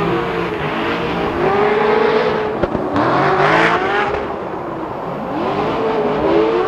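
Tyres screech loudly as cars slide sideways.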